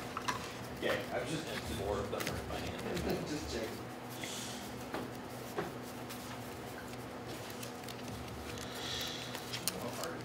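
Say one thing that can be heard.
Playing cards riffle and click as they are shuffled by hand.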